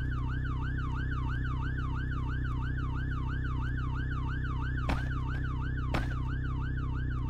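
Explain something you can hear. A police siren wails rapidly up and down, close by.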